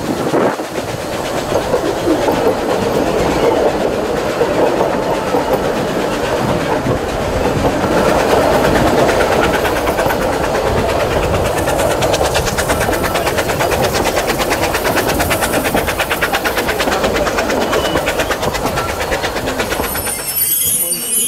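A train rumbles steadily along the track.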